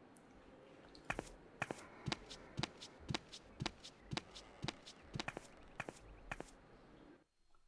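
Footsteps clatter down wooden stairs.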